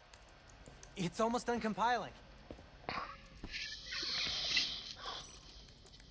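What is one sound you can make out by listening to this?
Fingers type on a laptop keyboard.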